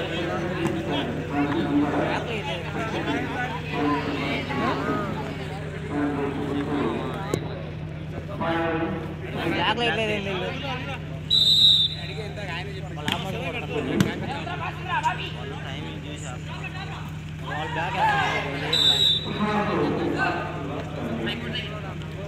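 A crowd of men chatter and shout outdoors.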